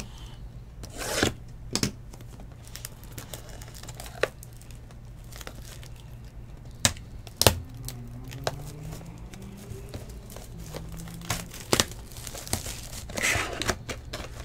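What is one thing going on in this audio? Plastic wrap crinkles and rustles as hands tear it off a box.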